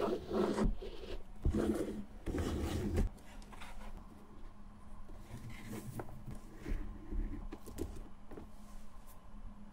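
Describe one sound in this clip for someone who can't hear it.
Shoelaces rub and scrape through a leather boot's eyelets.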